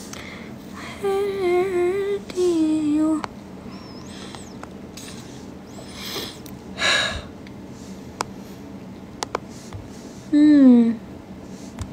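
A young woman hums a few drawn-out notes close by.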